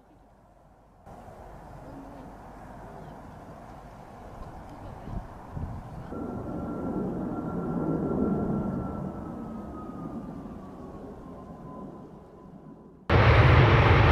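Jet engines roar overhead with a whining tone that slowly falls.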